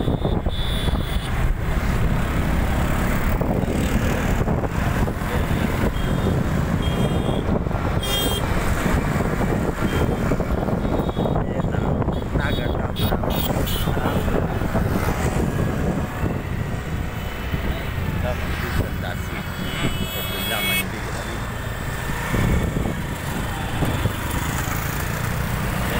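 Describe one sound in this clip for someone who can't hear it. Traffic rumbles along a busy road.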